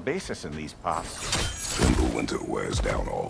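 An axe strikes with a heavy impact.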